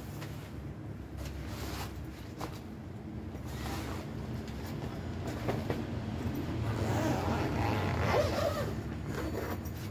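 Plastic bubble wrap rustles and crinkles as a bag is lifted out of it.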